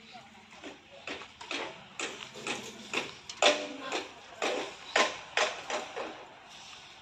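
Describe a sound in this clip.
Metal clanks sharply and repeatedly.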